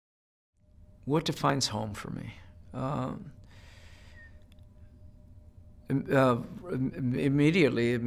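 An older man speaks calmly and thoughtfully into a close microphone.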